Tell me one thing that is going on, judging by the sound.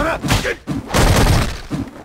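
A burst of energy crackles and whooshes.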